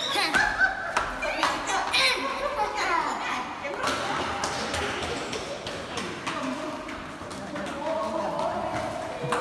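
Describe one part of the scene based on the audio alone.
Footsteps patter on a hard floor in an echoing hallway.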